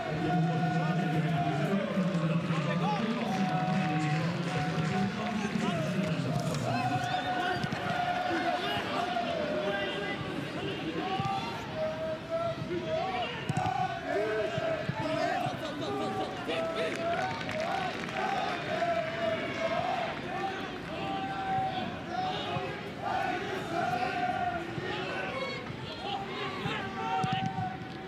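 A large crowd chants and sings steadily in an open stadium.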